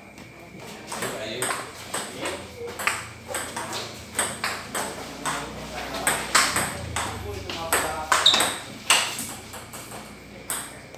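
A table tennis ball clicks back and forth off paddles and the table in a rally.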